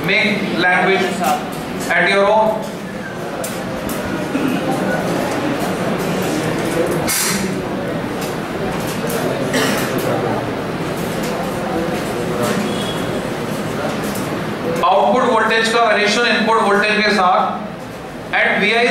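A man lectures loudly to a room.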